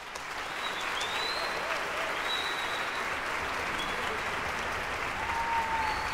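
Audience members whistle and cheer.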